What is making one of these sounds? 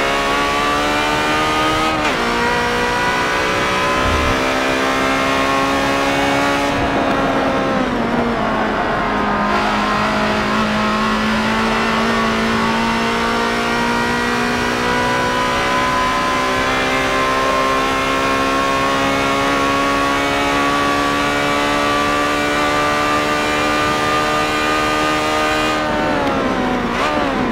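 A racing car engine roars loudly, rising in pitch as it speeds up and dropping as it shifts gear.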